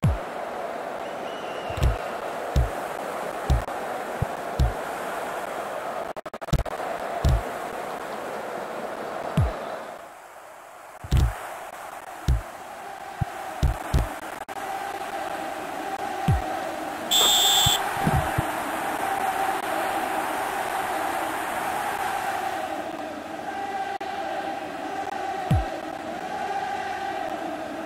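A crowd roars steadily in a large stadium.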